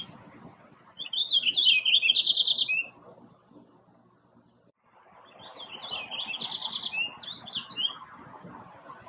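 A small songbird sings a bright, warbling song close by, twice.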